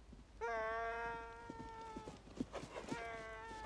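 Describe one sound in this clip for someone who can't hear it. A horse's hooves thud slowly on a dirt path.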